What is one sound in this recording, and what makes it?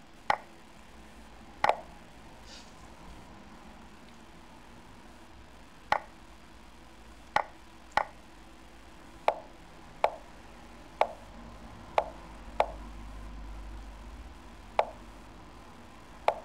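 Sharp clicks sound as chess moves are played, coming irregularly.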